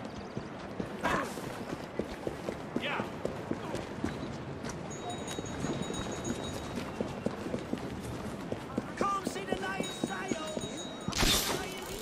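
Quick footsteps run over stone.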